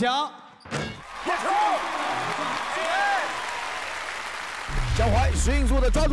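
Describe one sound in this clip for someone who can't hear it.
Young men on a bench shout and cheer.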